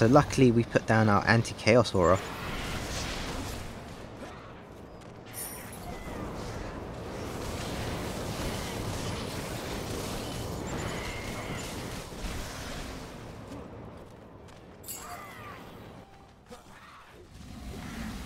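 Game magic blasts and hits crackle and whoosh throughout.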